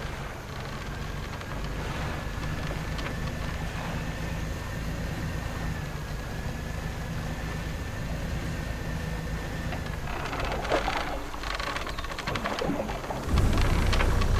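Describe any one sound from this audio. A boat engine hums steadily at low pitch.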